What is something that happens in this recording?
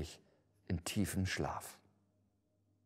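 An older man reads aloud calmly and clearly, close to a microphone.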